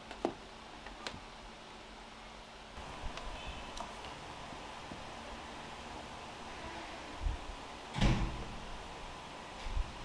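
Plastic tubing and fittings click and rattle as hands work on them.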